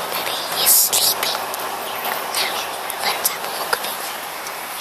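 A young child speaks softly, very close to the microphone.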